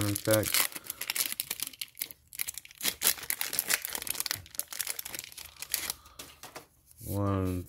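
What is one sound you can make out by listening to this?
A foil wrapper crinkles and tears as it is torn open.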